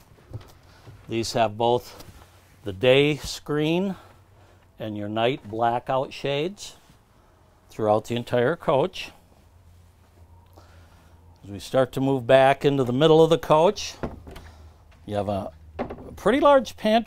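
An older man speaks calmly, close by.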